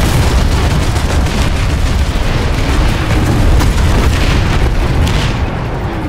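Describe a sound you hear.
Gunfire and explosions crack and boom nearby.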